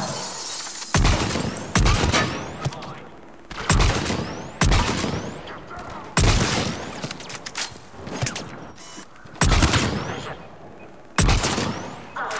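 Sniper rifle shots crack loudly, one at a time.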